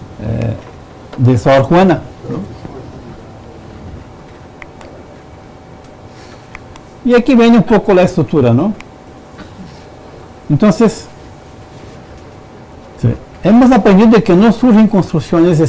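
A man speaks calmly, pausing between phrases.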